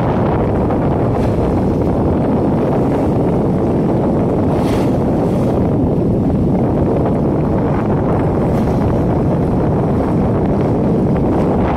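Water rushes and splashes against a moving ship's bow.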